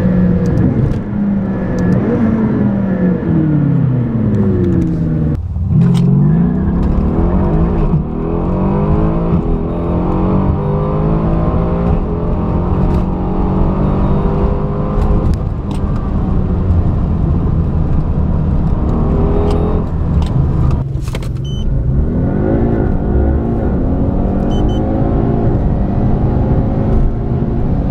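A car engine roars loudly, revving up and shifting gears over and over as the car speeds up.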